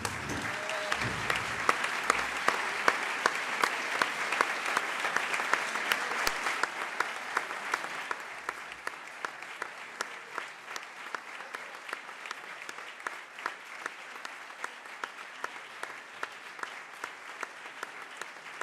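A large audience applauds steadily in an echoing hall.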